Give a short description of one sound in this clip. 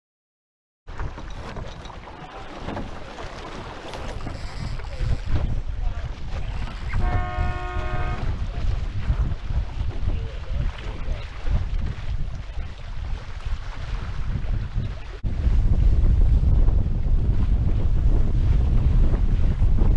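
Water rushes and splashes against the hull of a speeding sailboat.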